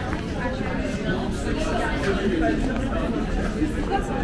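A woman's footsteps tap on paving nearby.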